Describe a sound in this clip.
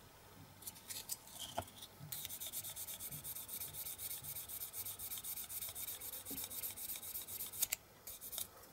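Sandpaper rubs rapidly against a small piece of plastic.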